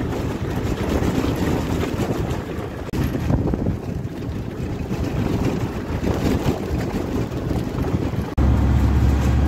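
Wind rushes past an open vehicle.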